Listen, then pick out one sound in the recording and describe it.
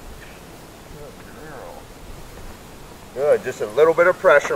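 A man talks to a dog in a lively, coaxing voice nearby, outdoors.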